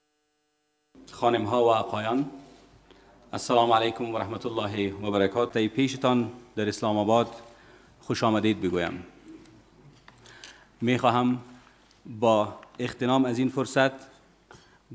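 A man speaks formally into a microphone.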